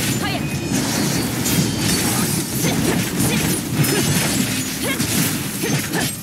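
Sword slashes and energy blasts crash in quick succession.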